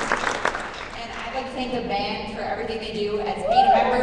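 A group of girls begins to sing together.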